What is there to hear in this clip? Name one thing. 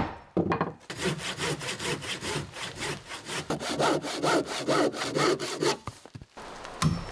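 A hand saw rasps through wood.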